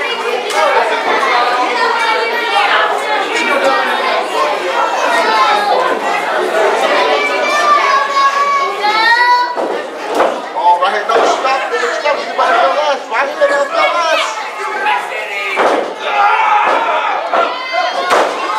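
Bodies thud onto a wrestling ring's mat.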